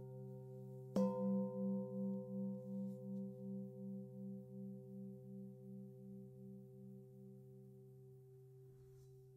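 A struck singing bowl rings with a slow, pulsing wobble that gradually fades.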